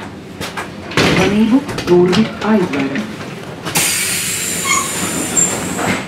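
A train rumbles steadily while moving.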